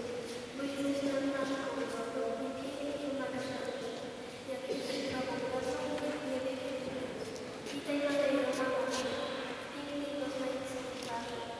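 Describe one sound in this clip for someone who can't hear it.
A group of people sing a slow hymn together in a large echoing hall.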